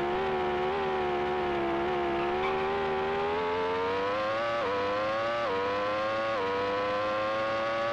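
A video game racing car engine revs back up, its pitch climbing with short dips at each gear change.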